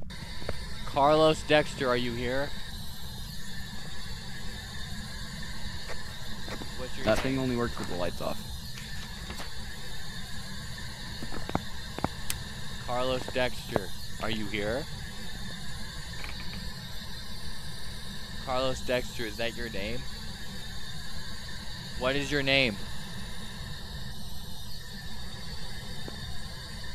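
A handheld radio hisses with static as it sweeps through stations.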